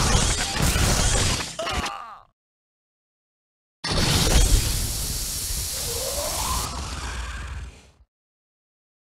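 Creatures snarl and screech as they fight.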